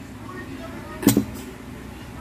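A metal bowl clanks once.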